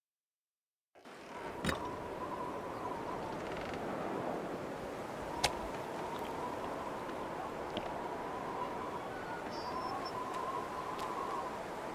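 Wind blows steadily outdoors in a snowstorm.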